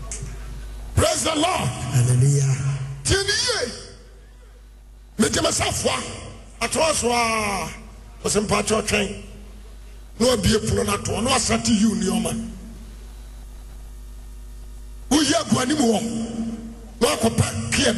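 A man preaches loudly and forcefully into a microphone, heard through loudspeakers in a large echoing hall.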